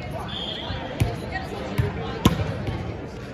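A volleyball smacks against hands and the floor.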